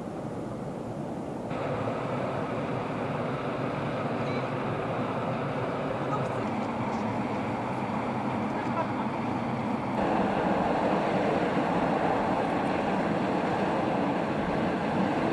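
Steam hisses and roars steadily from vents outdoors.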